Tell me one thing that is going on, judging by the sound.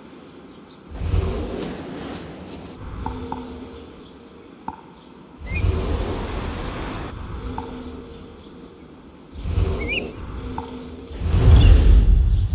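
Wings flap and whoosh in bursts as a large bird swoops.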